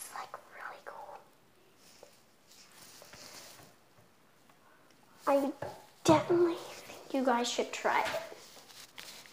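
A young girl speaks excitedly close by.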